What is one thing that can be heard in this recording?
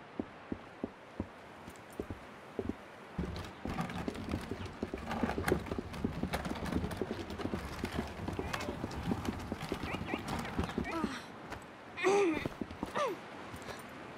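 Light footsteps patter quickly across the ground.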